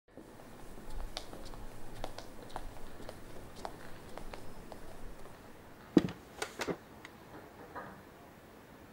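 Footsteps knock on a wooden floor in a large echoing room.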